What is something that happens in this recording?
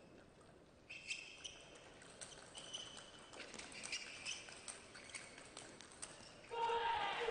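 Table tennis paddles strike a ball in a rally.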